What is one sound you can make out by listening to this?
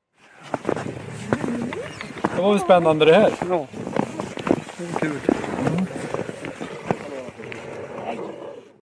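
Footsteps crunch in the snow.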